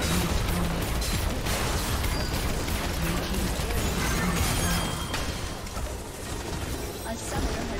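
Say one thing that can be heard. Game spell effects whoosh and crackle in a fast battle.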